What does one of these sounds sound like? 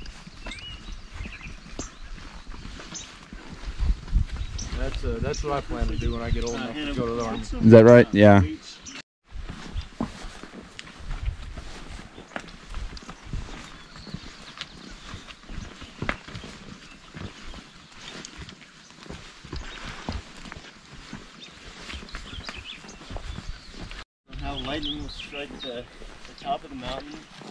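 Horses' hooves thud at a walk on a dirt trail.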